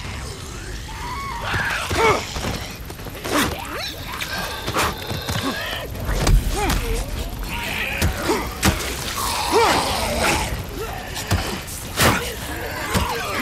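A zombie snarls and growls up close.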